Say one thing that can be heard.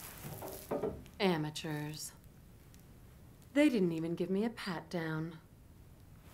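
A woman speaks slowly and teasingly, close by.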